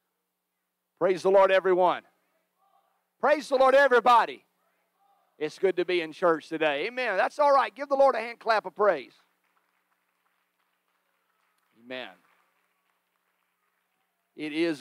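A man speaks calmly into a microphone, heard through a loudspeaker, with pauses.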